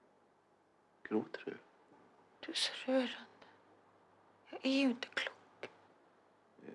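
A woman speaks quietly and sadly, close by.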